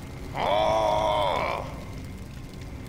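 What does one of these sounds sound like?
A portal hums and swirls.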